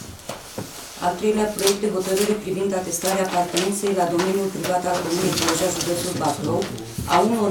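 A middle-aged woman reads aloud calmly and clearly.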